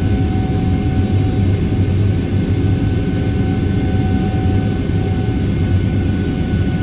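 A jet engine whines with a steady high tone.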